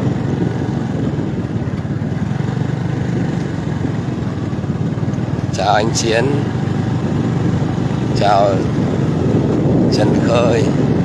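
A vehicle engine drones while travelling on a dirt road.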